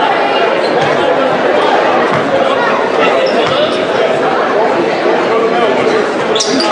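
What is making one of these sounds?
A large crowd chatters and cheers in an echoing arena.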